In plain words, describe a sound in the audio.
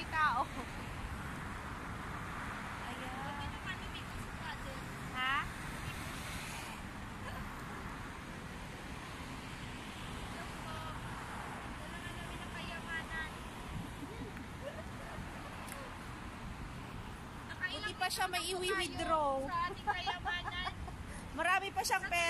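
Traffic hums steadily outdoors.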